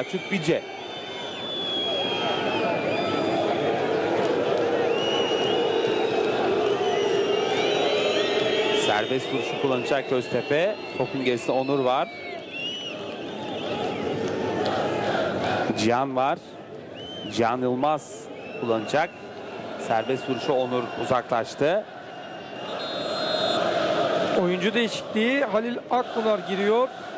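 A large stadium crowd chants and roars in the open air.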